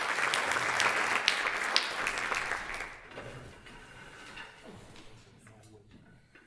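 An audience claps loudly in a large hall, and the applause quickly fades.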